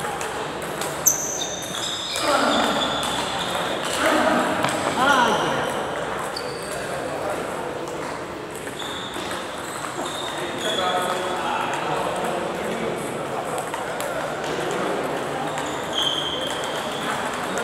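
Shoes squeak on the floor.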